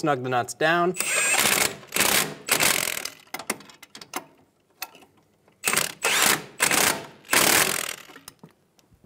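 A cordless impact wrench hammers at a suspension bolt in short bursts.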